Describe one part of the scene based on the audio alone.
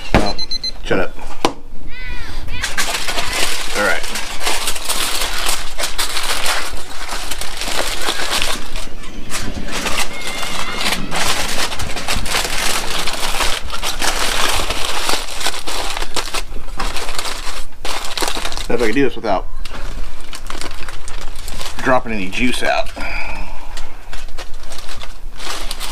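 Aluminium foil crinkles and rustles.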